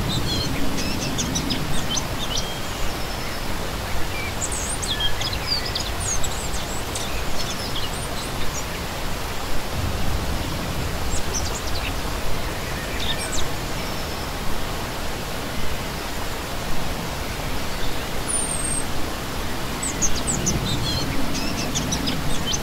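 A shallow stream rushes and splashes steadily over rocks.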